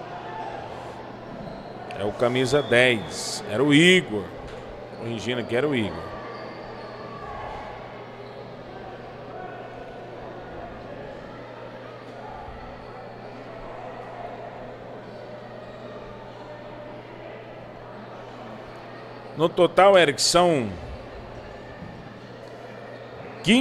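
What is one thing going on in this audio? Spectators murmur and chatter in an echoing indoor hall.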